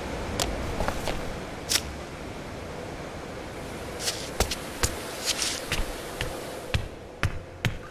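Small footsteps patter lightly.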